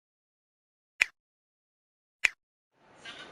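A mouse button clicks twice.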